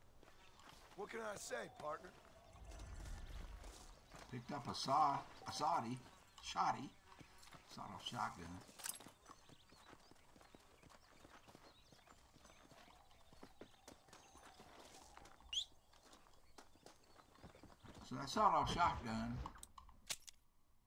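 An elderly man talks calmly into a microphone, heard close.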